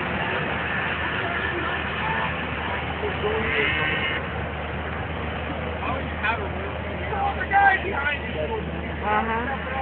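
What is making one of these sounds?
Wind rumbles steadily across an open outdoor slope.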